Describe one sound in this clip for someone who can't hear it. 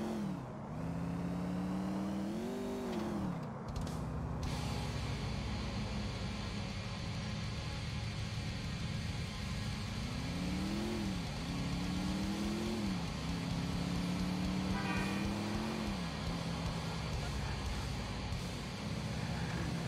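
A car engine hums and revs up and down.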